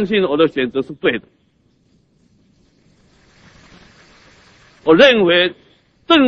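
A middle-aged man gives a speech emphatically through a microphone, with long pauses.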